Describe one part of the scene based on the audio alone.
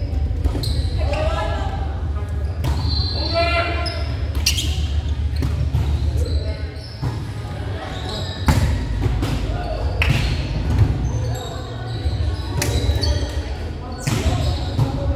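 Young adult players shout and call out to each other in an echoing hall.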